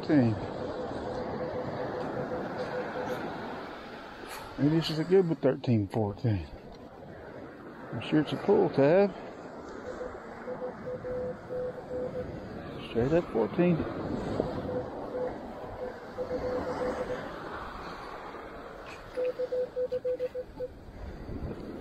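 A metal detector gives a steady beeping tone.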